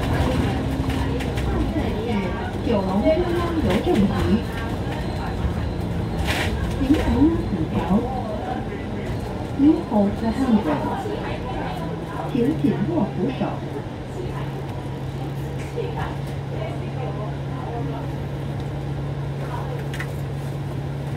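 Traffic rumbles along the street.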